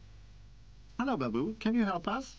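A child's voice speaks with animation, close by.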